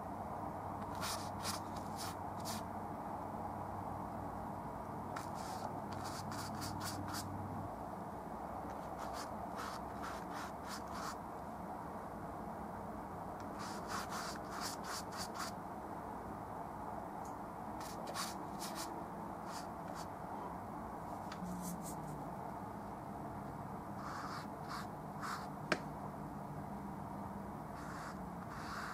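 A palette knife scrapes paint across a canvas in short strokes.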